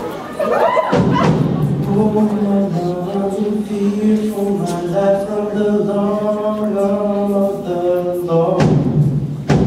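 A low male voice sings a deep steady bass line.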